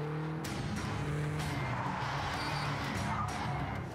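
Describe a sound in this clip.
A car engine roars as a car speeds around a track.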